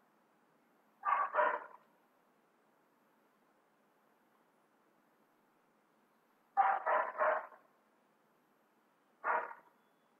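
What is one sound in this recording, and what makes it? A young man speaks in short bursts over an online call.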